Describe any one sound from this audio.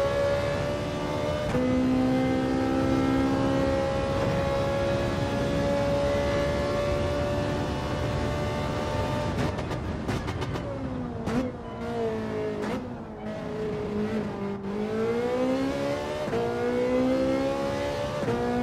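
A racing car engine roars at high revs, shifting up through the gears.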